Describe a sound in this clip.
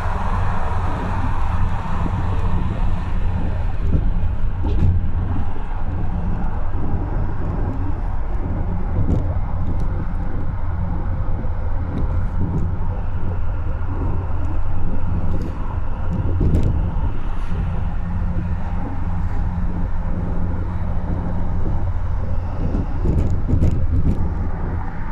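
Wind rushes past the car.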